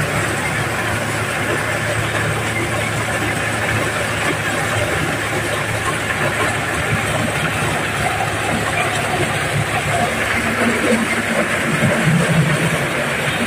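A threshing machine's engine runs with a loud steady rumble.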